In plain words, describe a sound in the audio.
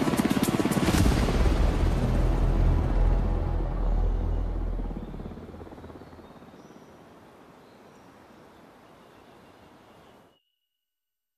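A helicopter's rotor thumps as the helicopter flies away and fades.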